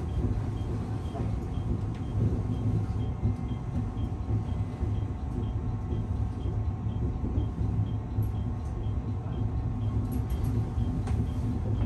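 Wheels clack rhythmically over rail joints.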